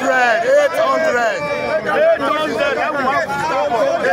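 A middle-aged man speaks loudly and angrily up close.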